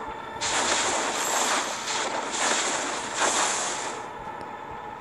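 Fighting sound effects whoosh and crackle in a video game.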